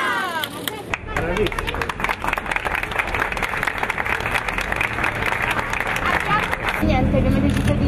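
A crowd applauds and claps outdoors.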